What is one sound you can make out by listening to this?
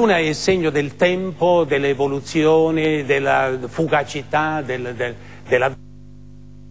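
An elderly man speaks calmly and steadily into a microphone.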